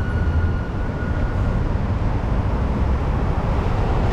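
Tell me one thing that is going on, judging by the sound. A bus drives past.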